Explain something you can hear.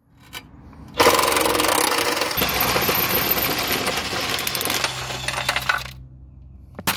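A power impact driver rattles loudly as it drives a bolt.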